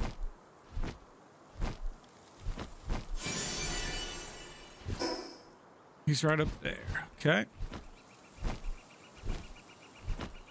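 Large wings flap with slow, regular whooshing beats.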